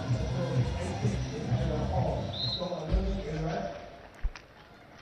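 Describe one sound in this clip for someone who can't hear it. A large crowd cheers and claps in an open-air stadium.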